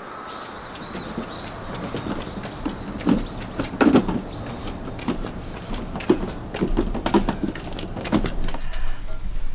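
Footsteps crunch on a stone path.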